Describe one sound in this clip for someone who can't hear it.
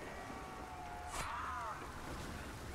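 A monster snarls and growls up close.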